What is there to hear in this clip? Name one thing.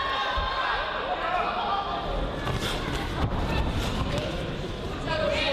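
Spectators shout and call out in a large echoing hall.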